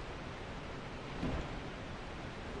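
A wooden chest lid creaks open with a thud.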